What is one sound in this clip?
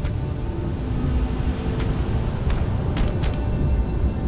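A body thuds onto rock.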